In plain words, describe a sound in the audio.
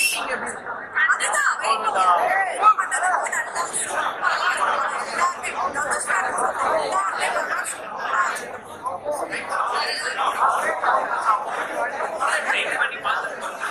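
A crowd of young people chatters all around.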